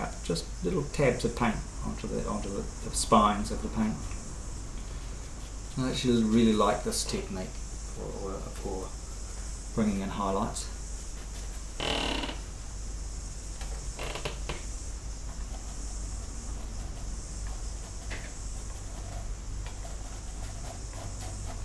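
A brush dabs and scrapes softly on canvas.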